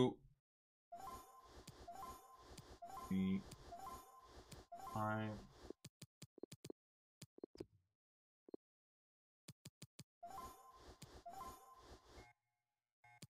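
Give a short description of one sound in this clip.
Short electronic menu chimes ring in quick repeats.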